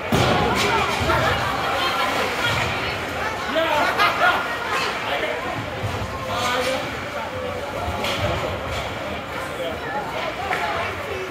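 Spectators talk and call out nearby.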